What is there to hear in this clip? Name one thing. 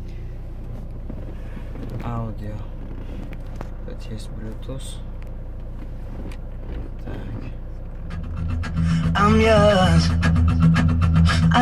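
A car radio plays and grows louder as the volume is turned up.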